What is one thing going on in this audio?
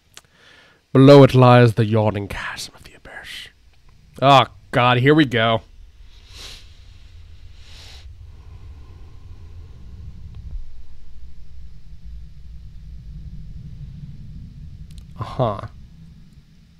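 A young man speaks animatedly into a close microphone.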